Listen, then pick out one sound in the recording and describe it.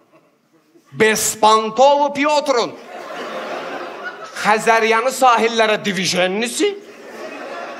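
A young man speaks with animation through a headset microphone, his voice echoing in a large hall.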